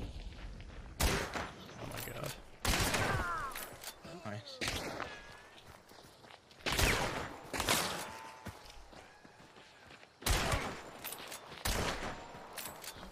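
Gunshots bang loudly, one after another.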